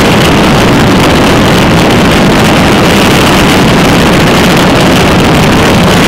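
Wind roars loudly and steadily against a moving vehicle.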